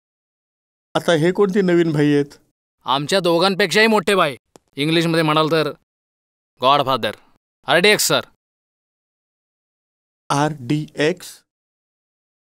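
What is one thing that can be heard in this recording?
An older man answers in a worried voice.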